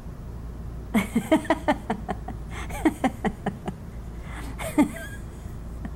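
A middle-aged woman laughs heartily close to a microphone.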